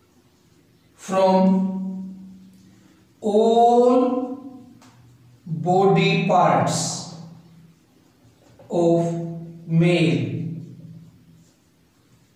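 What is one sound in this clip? A man speaks calmly and clearly in short phrases, close by.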